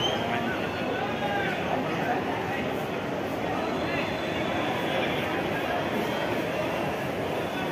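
A crowd of spectators chatters and shouts throughout.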